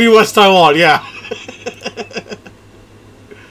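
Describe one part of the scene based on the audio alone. A man laughs in short bursts close to a microphone.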